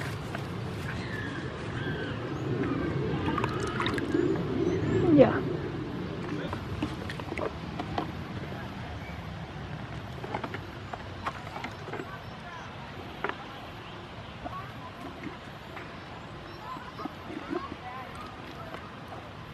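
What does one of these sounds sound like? A goat laps and slurps water from a bucket.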